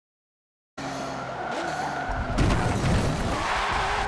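Tyres screech on a tight corner.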